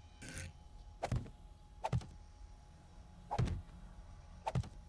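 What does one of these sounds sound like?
Heavy wooden pieces thud into place several times.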